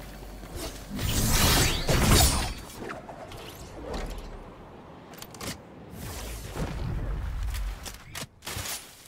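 Wind rushes past during a glide through the air.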